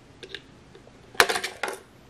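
A screwdriver turns a small screw.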